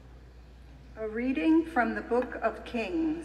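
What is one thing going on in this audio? A middle-aged woman reads aloud calmly through a microphone in a large echoing hall.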